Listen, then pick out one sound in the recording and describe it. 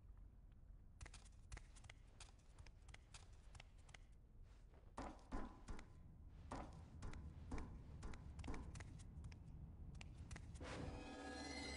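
Footsteps echo on a stone floor.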